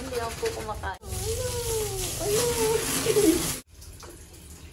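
Water sprays from a hose onto a dog.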